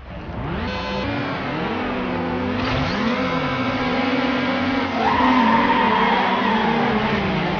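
Several car engines rev loudly, rising and falling in pitch.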